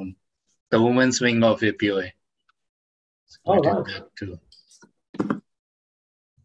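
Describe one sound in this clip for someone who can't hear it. A man speaks with animation through an online call.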